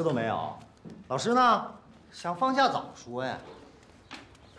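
A second young man speaks calmly, close by.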